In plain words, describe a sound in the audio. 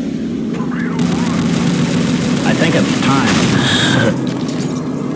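An energy weapon fires with a loud crackling blast.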